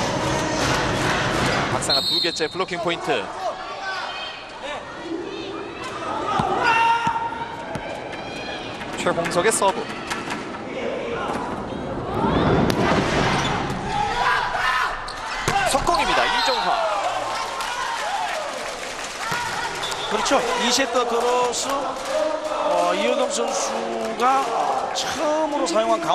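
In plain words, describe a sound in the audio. A large indoor crowd cheers and claps, echoing in a big hall.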